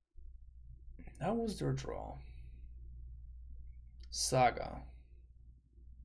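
A young man speaks casually into a close microphone, in short bursts.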